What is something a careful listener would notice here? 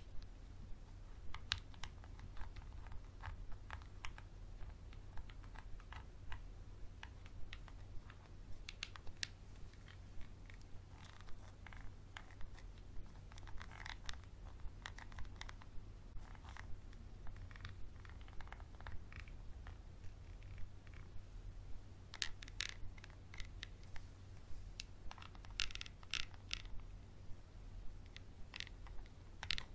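Small plastic pieces click and tap softly as hands handle them close by.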